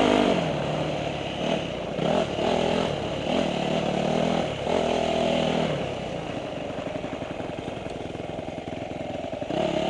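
Tyres roll and crunch over a dirt trail.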